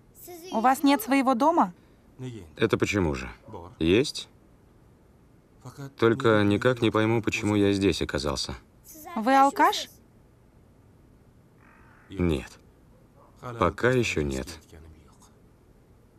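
A young boy speaks quietly, close by.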